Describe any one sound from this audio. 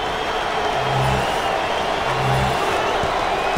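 A basketball bounces twice on a wooden floor.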